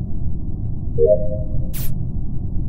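A short electronic chime rings as a task finishes.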